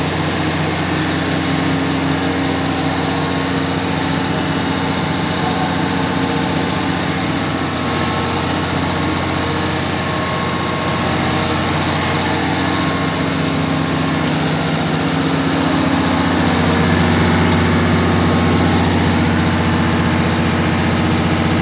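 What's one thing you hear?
A diesel generator engine runs with a loud, steady hum close by.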